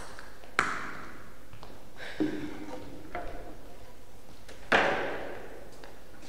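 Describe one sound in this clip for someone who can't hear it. Footsteps tap on a hard floor in an echoing room.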